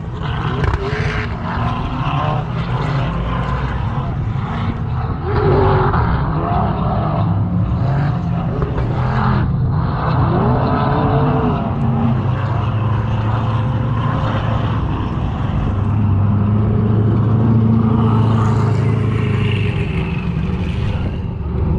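A vehicle engine roars and revs, rising and falling in pitch.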